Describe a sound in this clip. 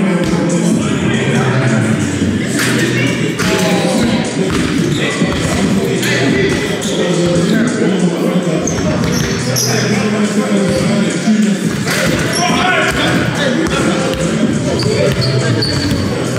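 Many people talk and shout across a large echoing hall.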